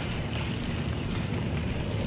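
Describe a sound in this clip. A walking frame's wheels roll over a tiled floor.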